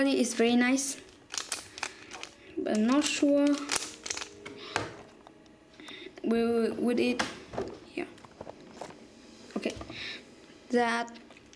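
The layers of a plastic puzzle cube click as they are twisted.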